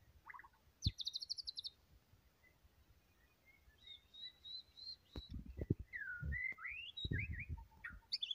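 A songbird sings a varied series of whistles, trills and chirps close by.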